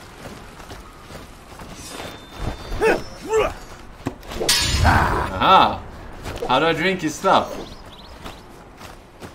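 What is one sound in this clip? Swords clash and swish in a game fight.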